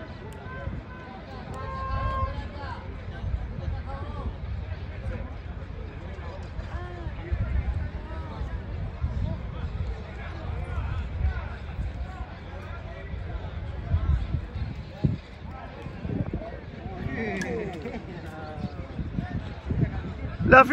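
A small crowd of men chatter and call out nearby, outdoors.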